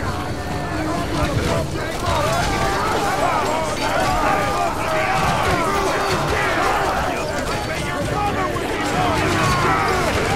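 Weapons clash in a battle.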